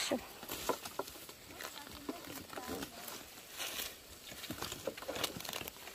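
A sickle cuts through plant stems.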